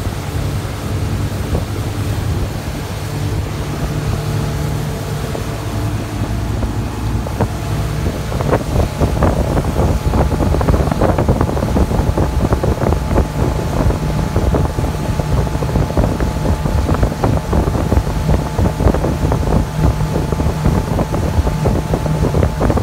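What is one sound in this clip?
Water splashes and churns in a boat's wake.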